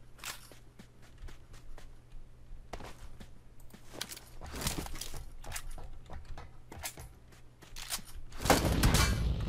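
Footsteps crunch quickly on dirt and gravel.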